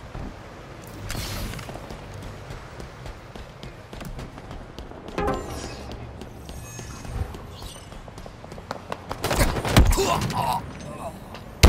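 An energy sword swings with a sharp whoosh.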